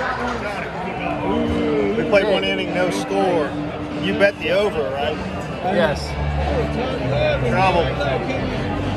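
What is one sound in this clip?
A second middle-aged man speaks close by.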